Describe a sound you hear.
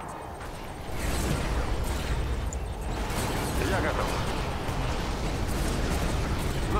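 Laser beams zap and crackle in rapid bursts.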